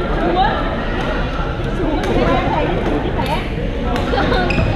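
Badminton rackets strike shuttlecocks with sharp pops that echo in a large hall.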